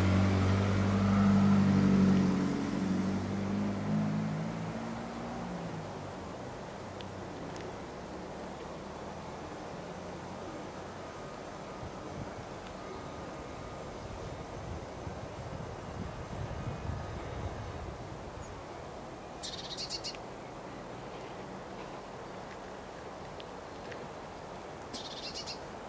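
Holly leaves rustle softly in a light breeze outdoors.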